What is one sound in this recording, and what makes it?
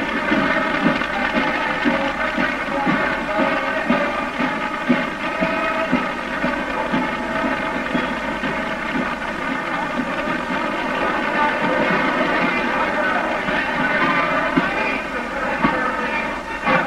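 A marching band plays brass music outdoors.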